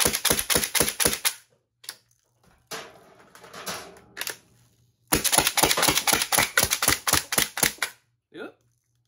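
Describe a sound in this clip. A toy blaster fires foam darts in rapid bursts of sharp clacks.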